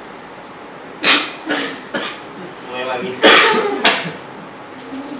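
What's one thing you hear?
Men laugh loudly nearby.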